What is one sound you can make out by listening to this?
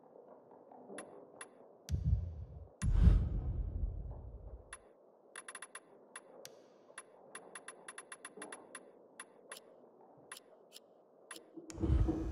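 Short menu clicks tick one after another, sometimes in quick bursts.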